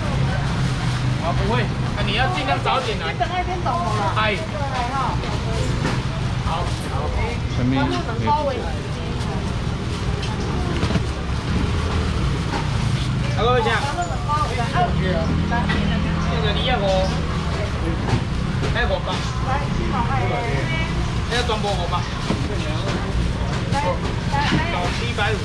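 Several men and women talk and call out at once in a busy market crowd.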